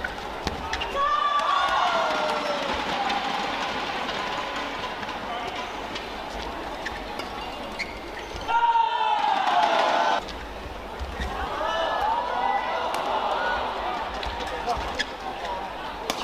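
A racket strikes a shuttlecock with sharp pops in a rally.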